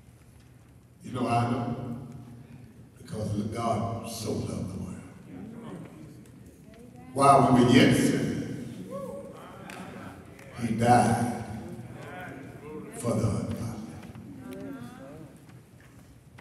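A middle-aged man preaches with passion through a microphone, his voice echoing in a large hall.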